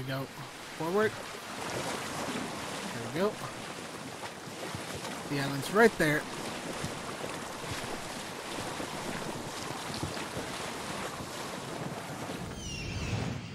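Water splashes against a sailing boat's hull.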